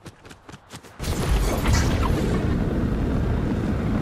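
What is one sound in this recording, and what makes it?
A jetpack roars with a rushing thrust.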